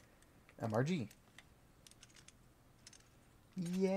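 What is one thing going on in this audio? A padlock clicks open.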